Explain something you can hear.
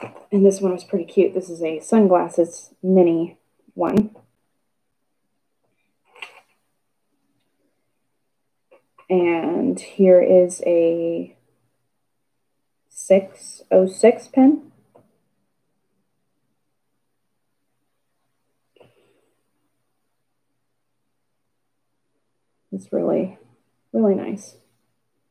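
A young woman talks calmly into a nearby microphone, in short bursts with pauses.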